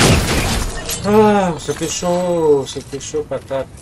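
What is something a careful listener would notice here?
A young man talks excitedly into a close microphone.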